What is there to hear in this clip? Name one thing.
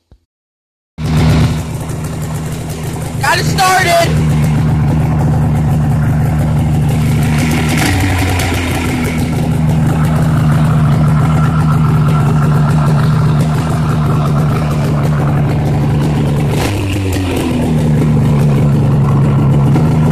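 A snowmobile engine idles with a steady rumble outdoors.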